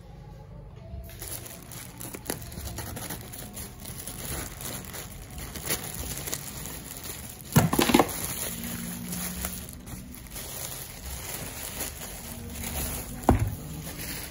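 A plastic bag rustles and crinkles as hands handle it.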